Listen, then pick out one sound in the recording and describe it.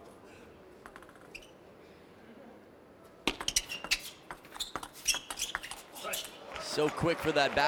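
Table tennis paddles strike a ball back and forth in a quick rally.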